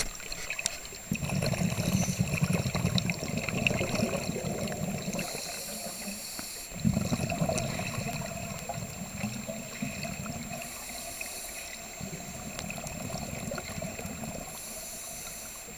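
Air bubbles from a diver's breathing gear rumble and gurgle underwater in bursts.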